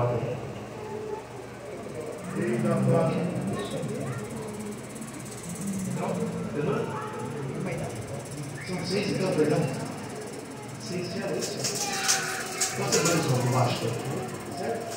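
A man preaches through a loudspeaker in a large echoing hall.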